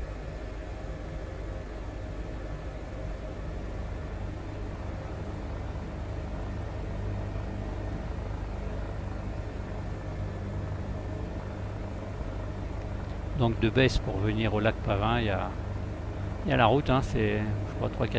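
A helicopter engine and rotor drone steadily from inside the cabin.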